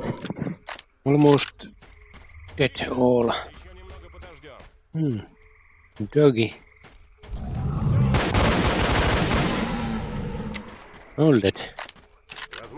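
A wild boar grunts and squeals.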